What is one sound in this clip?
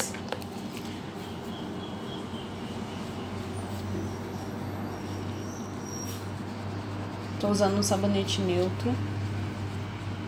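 A gloved hand rubs foam onto skin with a soft squelching.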